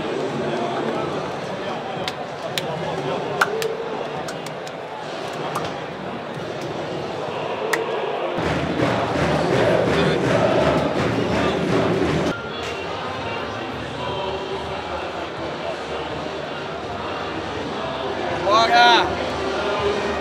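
A large stadium crowd roars and murmurs in the distance.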